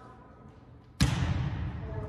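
A volleyball is struck with a sharp smack in a large echoing gym.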